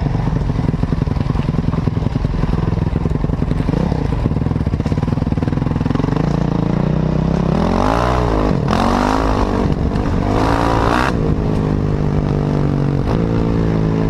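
A motorcycle engine revs loudly up close, rising and falling in pitch.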